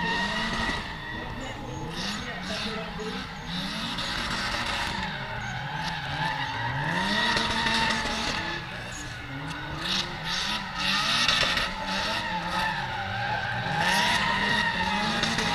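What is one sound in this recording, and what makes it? Car engines rev hard in the distance, rising and falling.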